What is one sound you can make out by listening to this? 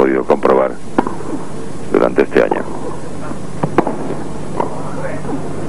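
A tennis ball is hit back and forth with rackets, each hit a sharp pop.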